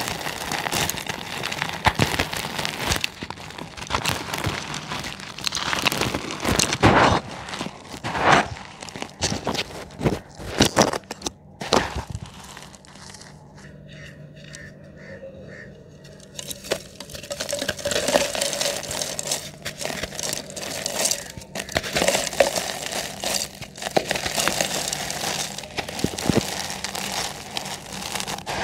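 Dry cement blocks crumble and crunch between fingers.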